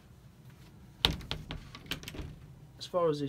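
A wooden door knocks and clatters as it opens.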